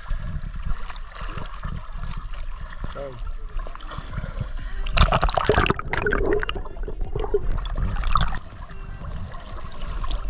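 Water splashes as a swimmer strokes.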